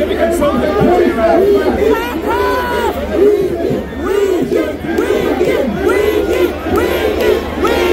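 A young man shouts into a microphone over loudspeakers.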